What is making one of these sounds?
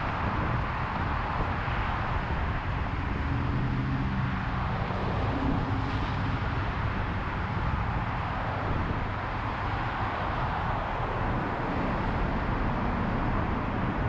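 Car tyres roar steadily on a busy highway.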